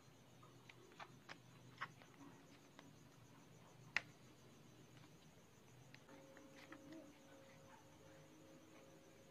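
Plastic paint palettes click and clatter as they are handled.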